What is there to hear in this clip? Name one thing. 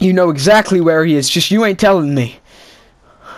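A man speaks tensely and loudly, close by.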